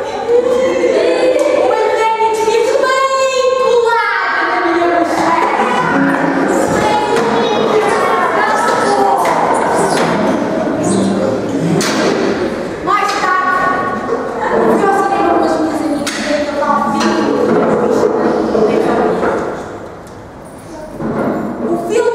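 Young women sing loudly into microphones, heard through loudspeakers.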